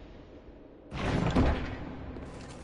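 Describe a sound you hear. A heavy wooden chest lid creaks open with a thud.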